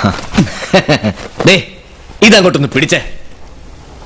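A young man speaks loudly and with animation.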